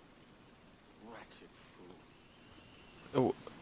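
A man mutters calmly nearby.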